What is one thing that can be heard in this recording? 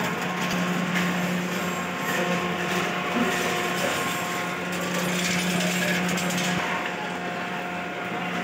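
Busy street traffic murmurs steadily outdoors.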